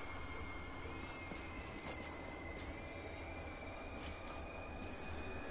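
Melee weapon strikes hit in a video game.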